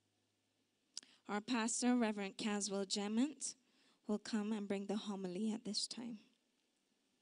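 A woman sings into a microphone over loudspeakers in a large echoing hall.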